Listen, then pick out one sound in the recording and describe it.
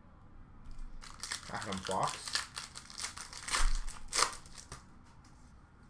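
A plastic wrapper crinkles and tears as it is pulled open.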